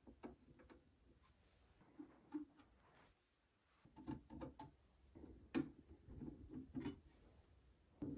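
A screwdriver turns screws with faint scraping clicks.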